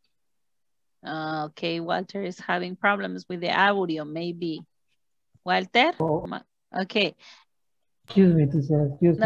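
A woman speaks clearly over an online call.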